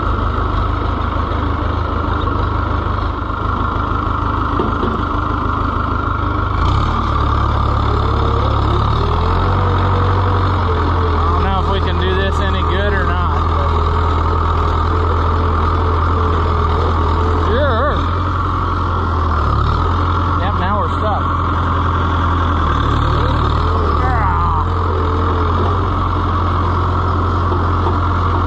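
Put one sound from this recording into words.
A tractor's diesel engine chugs loudly and steadily, close by.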